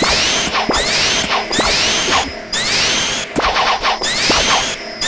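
Bright electronic chimes rise quickly over and over.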